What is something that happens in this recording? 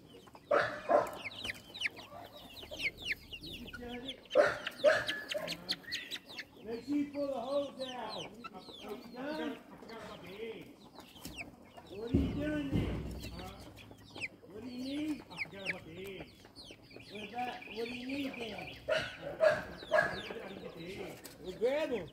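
Chickens cheep and cluck close by, outdoors.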